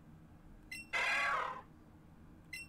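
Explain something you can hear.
A small creature gives a short, high cry.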